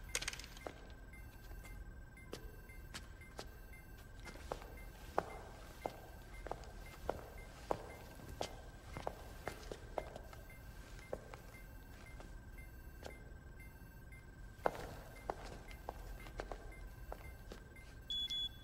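Footsteps clack on a hard floor.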